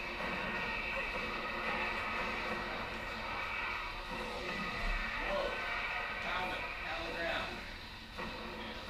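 Young men talk and laugh close to a microphone.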